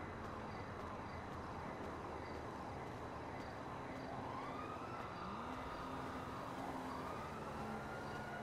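Footsteps tap steadily on hard paving.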